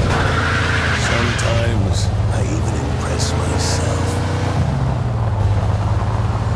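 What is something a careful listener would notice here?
Car tyres rumble over cobblestones.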